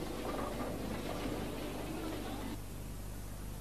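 A crowd murmurs and chatters indoors.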